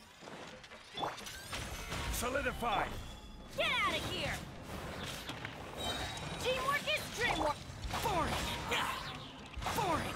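Fiery magic blasts whoosh and roar.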